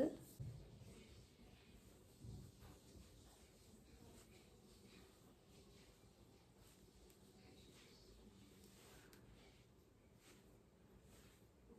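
Fingers softly pat and rub skin.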